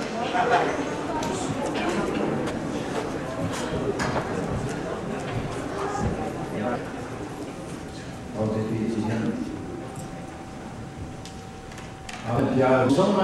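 A large crowd murmurs and chatters in an echoing hall.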